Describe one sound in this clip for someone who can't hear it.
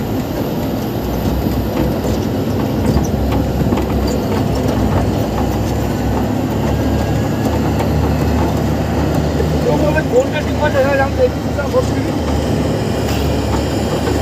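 A jet engine rumbles and whines steadily.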